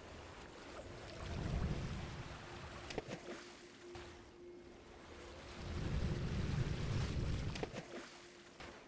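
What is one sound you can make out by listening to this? Low rushing whooshes swell and fade.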